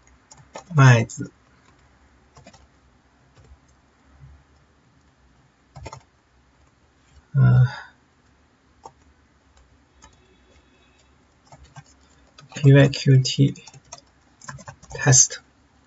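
Keys click on a computer keyboard.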